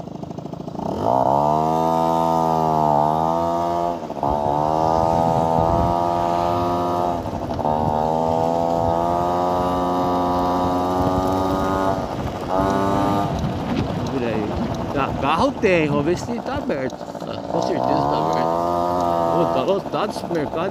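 A motorcycle engine hums close by, its pitch rising and falling as it speeds up and slows.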